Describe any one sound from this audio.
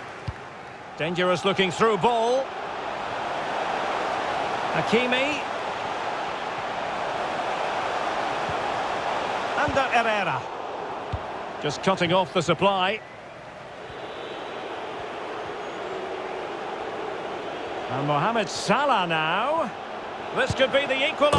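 A large stadium crowd cheers and murmurs steadily.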